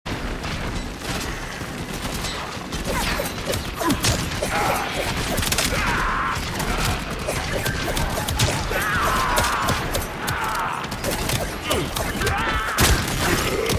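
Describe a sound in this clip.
Blades slash and clang in quick strikes.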